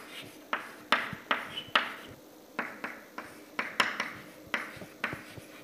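Chalk taps and scrapes sharply on a chalkboard.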